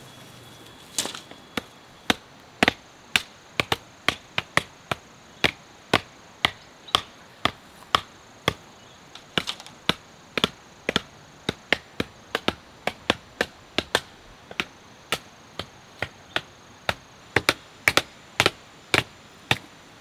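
Wooden mallets pound bamboo stakes into the ground with sharp, rapid knocks.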